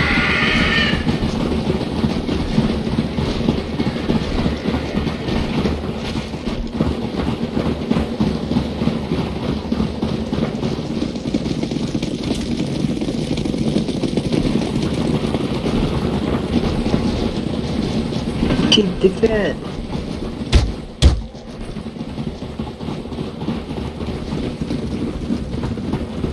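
Many footsteps crunch quickly through snow.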